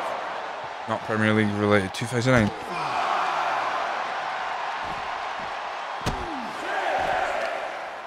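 A crowd cheers and roars steadily.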